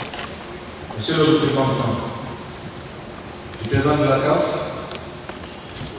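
A man speaks with animation into a microphone, heard over a loudspeaker in a large echoing hall.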